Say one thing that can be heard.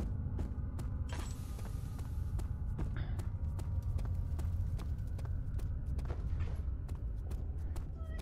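Footsteps thud steadily on a stone floor.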